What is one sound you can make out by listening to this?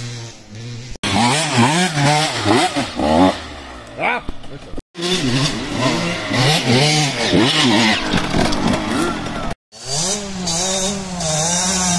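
A motorcycle engine revs up and down sharply, close by.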